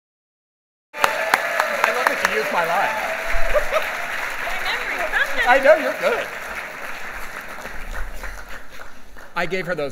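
A crowd applauds in a large hall.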